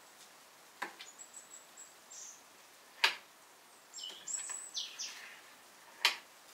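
A knife scrapes and squeaks across a metal tray.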